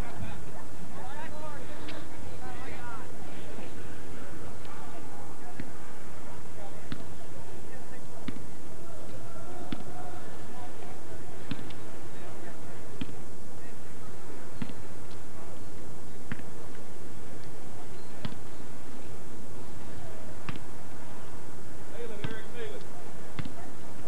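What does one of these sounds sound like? Young men shout to each other across an open field, distant.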